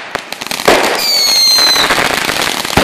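A firework whistles as it rises.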